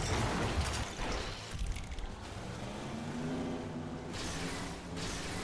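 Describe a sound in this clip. Water splashes and sprays.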